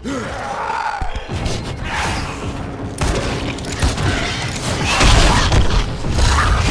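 A monster snarls and screeches up close.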